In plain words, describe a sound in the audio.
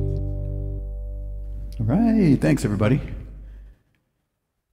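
An electric guitar chord rings out and slowly fades.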